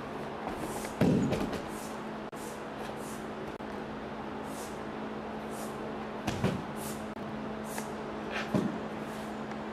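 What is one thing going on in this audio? A body thuds heavily onto a padded mat.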